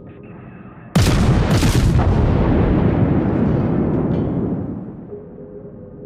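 Heavy naval guns fire with a loud, booming blast that slowly fades.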